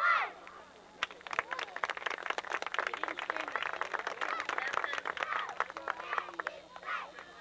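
Young girls clap their hands in a quick rhythm.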